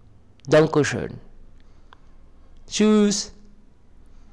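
A man speaks through a microphone with animation, in short bursts.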